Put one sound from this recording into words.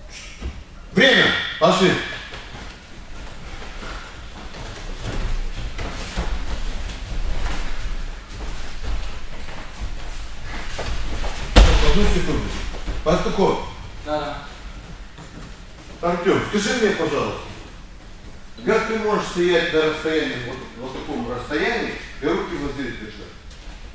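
A man speaks loudly and firmly in an echoing hall.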